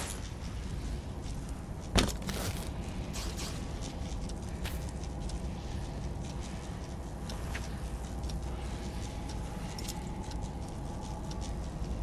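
An electrified blade crackles and buzzes.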